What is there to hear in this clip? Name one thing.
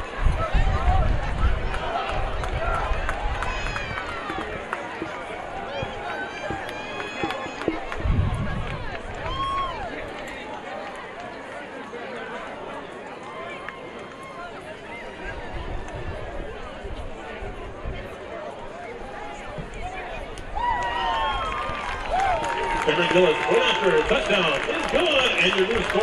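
A crowd in the stands murmurs throughout.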